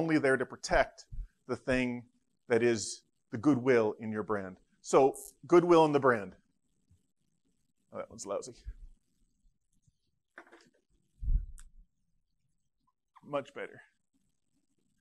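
A middle-aged man lectures calmly through a microphone.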